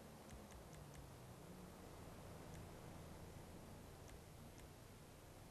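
Soft menu clicks tick as options are scrolled through.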